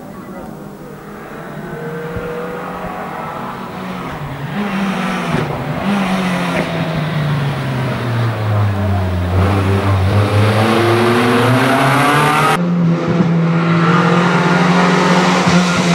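A rally car engine approaches, climbing and roaring louder as it passes close by.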